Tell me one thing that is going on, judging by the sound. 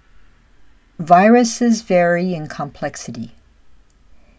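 An elderly woman speaks calmly through a microphone, as if on an online call.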